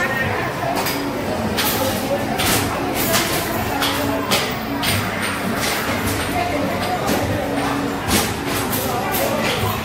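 A ticket dispenser clicks steadily as it feeds out tickets.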